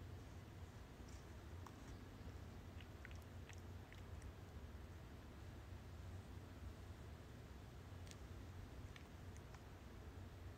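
A cat rustles softly against a rope post.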